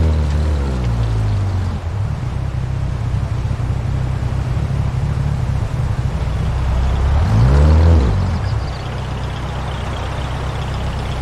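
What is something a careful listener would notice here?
Tyres crunch and skid over loose gravel.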